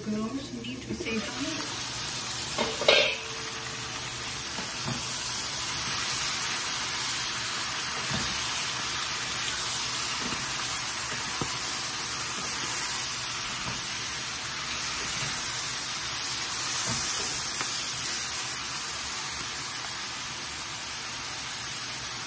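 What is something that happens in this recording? Vegetables sizzle loudly in a hot pan.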